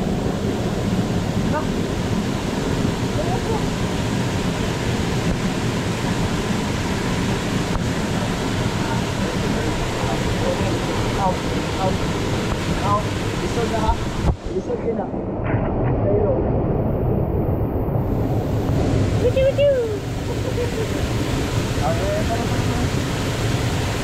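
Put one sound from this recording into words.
Water splashes and rushes steadily over rocks.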